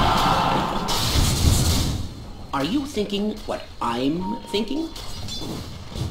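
Magic blasts and weapon clashes ring out in a game battle.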